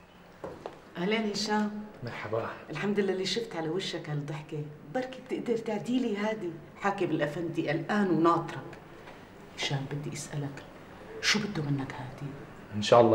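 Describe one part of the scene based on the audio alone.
A woman speaks with emotion close by.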